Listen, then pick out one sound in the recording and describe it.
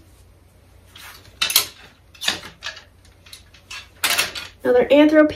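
Clothes hangers clatter and scrape on a metal rail.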